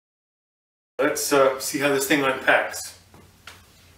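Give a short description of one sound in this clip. An elderly man speaks calmly to the listener, close by.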